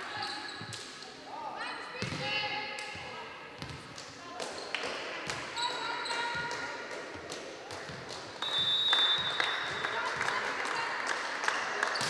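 A volleyball is struck with sharp smacks in an echoing hall.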